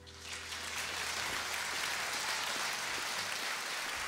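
A small acoustic band plays a closing chord that rings out and fades.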